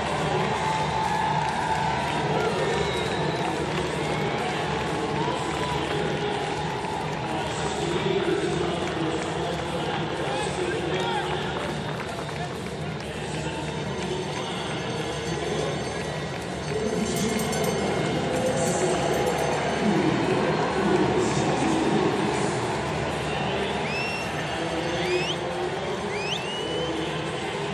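A large crowd cheers and murmurs in a big open stadium.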